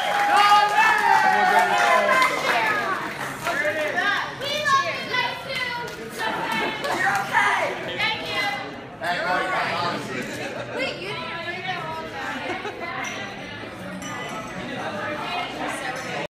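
A crowd of men and women chatters in the background.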